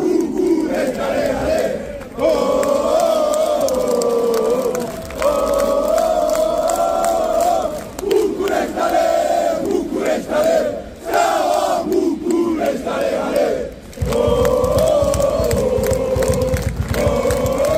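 A large crowd of men chants loudly in unison outdoors.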